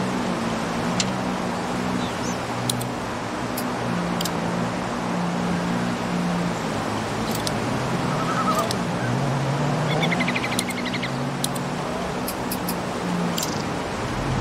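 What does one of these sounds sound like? Short interface clicks tick as menu selections change.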